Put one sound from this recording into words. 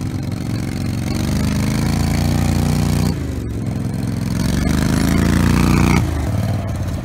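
Tyres crunch and skid on dirt and gravel.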